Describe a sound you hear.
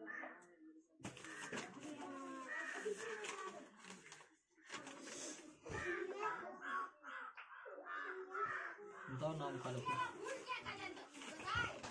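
Paper rustles as pages are turned and handled.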